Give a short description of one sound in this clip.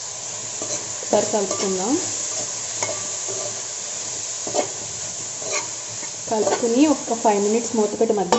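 A metal spoon scrapes and clinks against a metal bowl while stirring.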